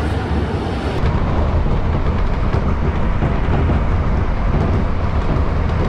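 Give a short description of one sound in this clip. A train rumbles and rattles steadily along its track.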